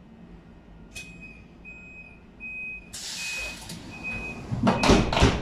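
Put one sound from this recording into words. A door warning signal beeps repeatedly.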